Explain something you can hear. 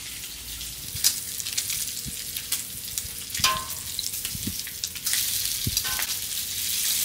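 A metal spatula scrapes and taps on a griddle.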